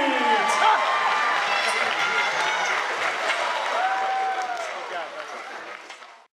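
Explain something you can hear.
A crowd cheers and shouts loudly in a large echoing hall, then fades away.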